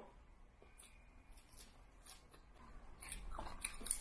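A young woman chews crunchy leafy vegetables.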